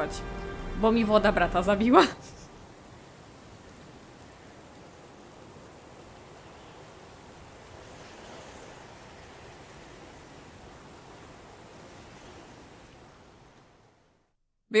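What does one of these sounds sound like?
Water rushes softly in the background.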